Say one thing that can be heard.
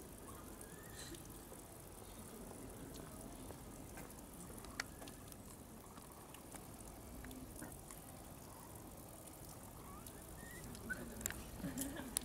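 Water trickles steadily from a pipe into a pool.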